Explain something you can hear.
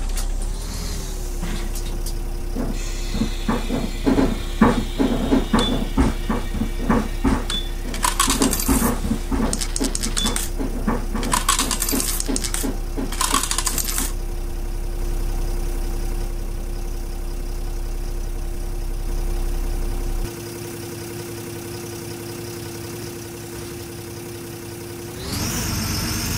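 A bus engine idles with a steady hum.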